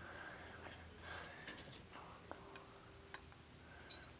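Powder is sprinkled softly into a glass of water.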